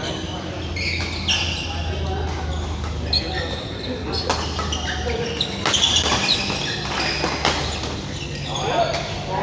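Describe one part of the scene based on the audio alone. Rackets strike a badminton shuttlecock in a large echoing hall.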